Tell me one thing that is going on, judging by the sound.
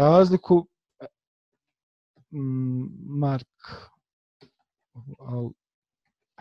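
A man speaks calmly and slowly into a microphone, close up.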